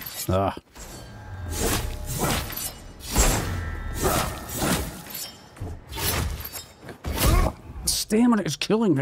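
Swords slash and strike in a fight.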